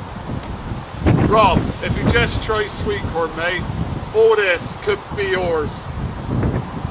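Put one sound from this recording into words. A man talks with animation outdoors in the wind.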